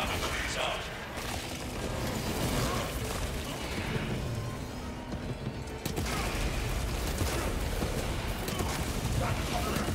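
Blades slash and clash in close combat.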